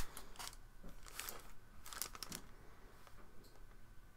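A pencil scratches lightly on paper.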